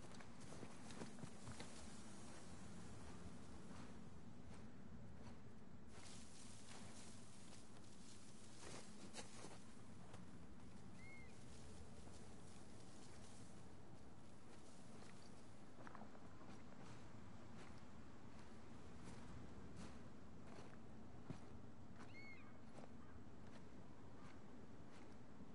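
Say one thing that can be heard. Footsteps rustle softly through tall dry grass.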